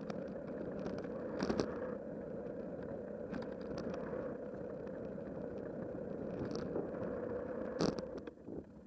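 A bicycle's tyres hum steadily on a paved path.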